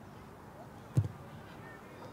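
A boot strikes a ball with a sharp thud.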